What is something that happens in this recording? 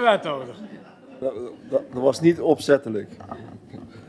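A man chuckles into a microphone.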